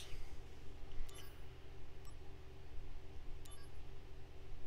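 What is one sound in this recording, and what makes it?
A soft menu blip sounds as a choice is picked.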